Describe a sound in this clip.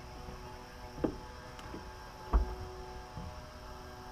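Footsteps thud on a boat's metal deck.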